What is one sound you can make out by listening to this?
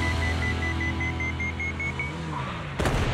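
A bomb timer beeps rapidly.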